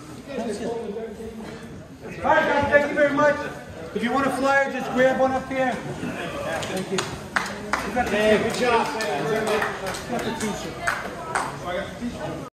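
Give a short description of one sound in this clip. A group of men chatter in a room.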